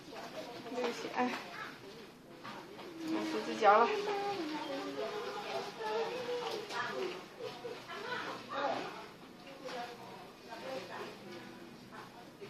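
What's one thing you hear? An elderly woman speaks slowly and hoarsely nearby.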